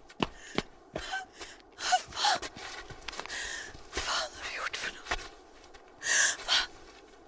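A young woman sobs and gasps close by.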